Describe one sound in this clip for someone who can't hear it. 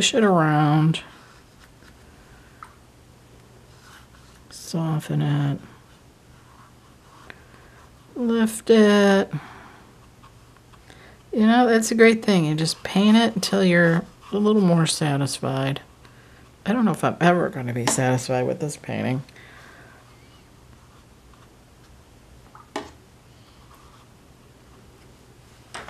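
A paintbrush dabs and strokes softly on paper.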